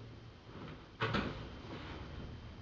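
Fabric rustles as a coat is handled nearby.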